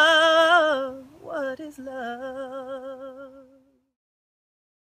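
A young woman sings a sustained, wavering melody close by.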